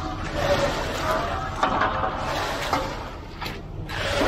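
A trowel scrapes and slaps across wet concrete.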